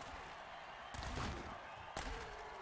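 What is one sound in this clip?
Armoured players collide with a heavy thud.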